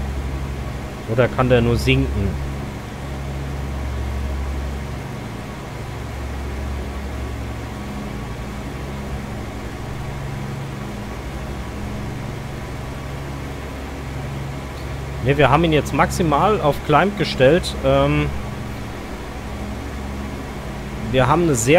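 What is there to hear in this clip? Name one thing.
Aircraft engines drone steadily and low.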